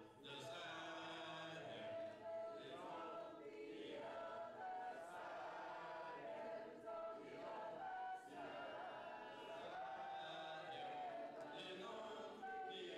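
An elderly man speaks with animation through a microphone in an echoing hall.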